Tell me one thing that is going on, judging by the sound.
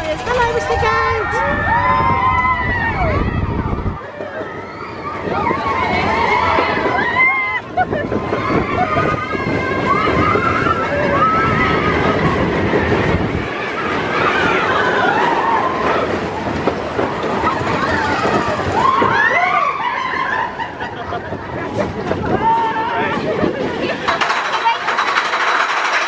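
A roller coaster rattles and rumbles along its track.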